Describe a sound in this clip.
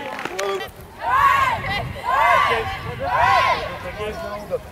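A group of girls cheer loudly together three times outdoors.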